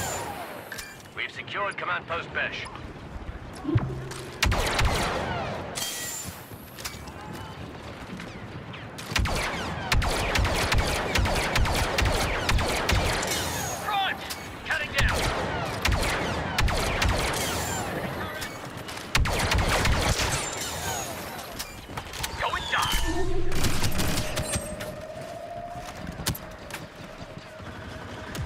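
Blaster shots fire in rapid bursts.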